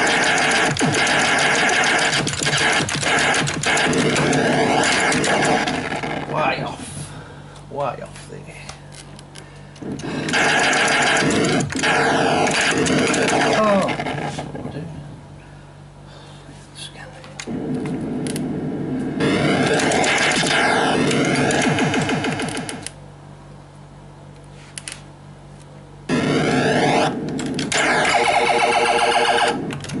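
An arcade game beeps, zaps and explodes with loud electronic sound effects.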